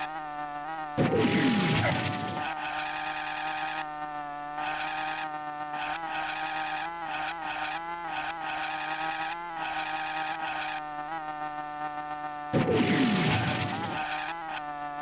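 A speed boost whooshes with a falling rush.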